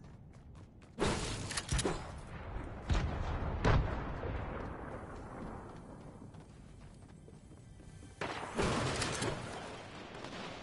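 Gunshots crack and boom with a ringing echo.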